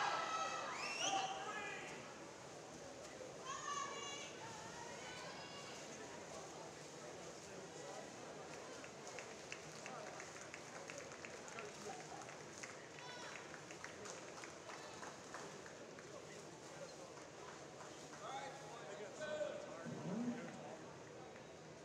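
Swimmers splash steadily through the water.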